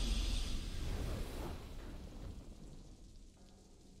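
A triumphant game fanfare swells and then fades away.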